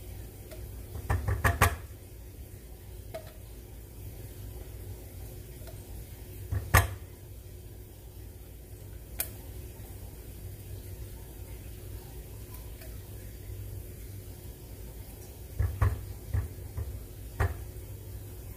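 A spatula scrapes and taps against the inside of a metal can.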